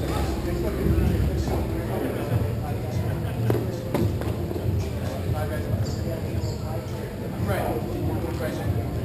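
Plastic wheels roll and scrape across a hard rink floor.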